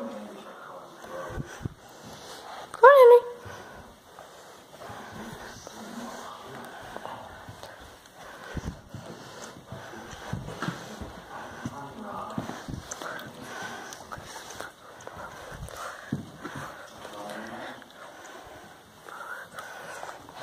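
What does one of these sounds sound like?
A small dog's paws pad softly on steps.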